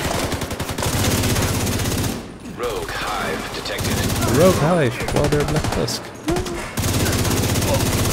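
Rapid gunfire bursts out close by.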